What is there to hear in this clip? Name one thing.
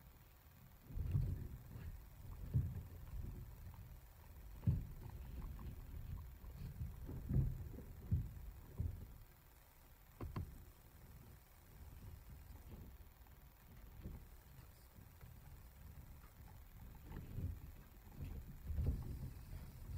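A small animal rustles through dry bedding close by.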